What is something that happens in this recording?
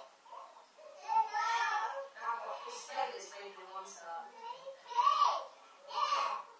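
A baby cries close by.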